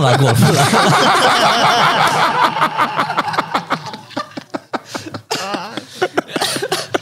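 Several men laugh loudly together close to microphones.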